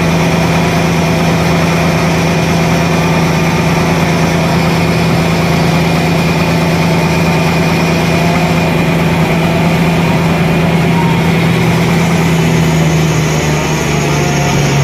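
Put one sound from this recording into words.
A large band saw hums and whines steadily as it cuts through a thick log.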